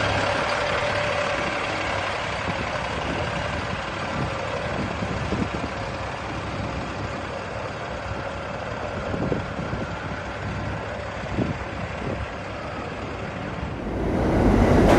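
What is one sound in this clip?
A bus engine rumbles as the bus pulls away in street traffic.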